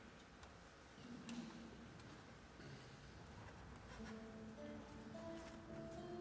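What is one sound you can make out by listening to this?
A choir begins to sing softly.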